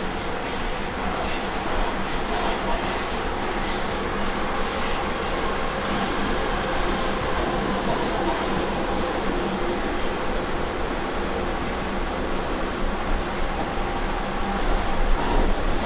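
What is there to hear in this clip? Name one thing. A subway train rumbles and rattles loudly along the tracks.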